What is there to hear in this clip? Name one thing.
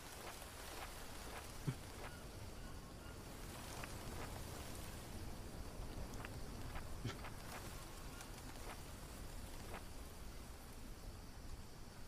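A notebook page turns with a soft papery flick.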